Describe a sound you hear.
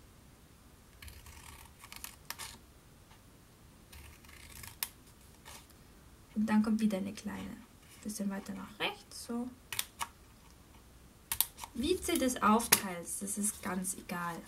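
A sheet of card rustles and slides as it is handled.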